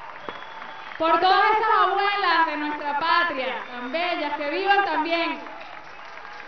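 A woman sings through a microphone over a loudspeaker.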